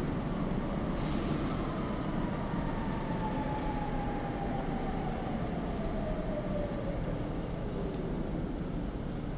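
A train's motor whines and slowly drops in pitch.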